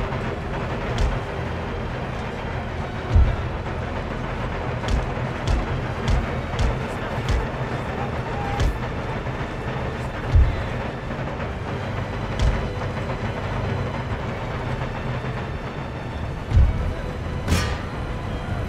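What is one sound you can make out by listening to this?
Cannons boom with deep thuds.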